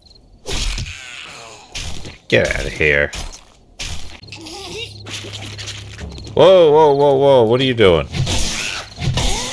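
A blade strikes flesh with wet thuds.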